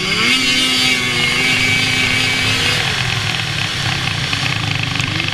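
A snowmobile engine drones loudly and steadily, shifting in pitch.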